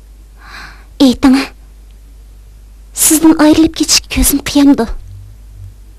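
A young woman speaks close by, with feeling.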